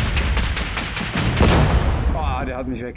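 An explosion booms.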